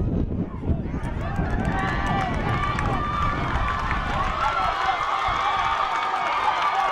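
A crowd of spectators cheers and shouts loudly outdoors.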